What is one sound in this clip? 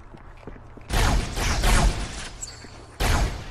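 A plasma gun fires in rapid, buzzing bursts.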